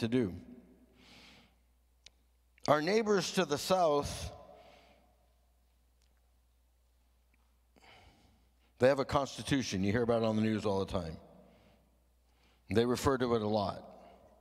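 An older man speaks calmly into a microphone in phrases with long pauses, heard through a loudspeaker in a room with some echo.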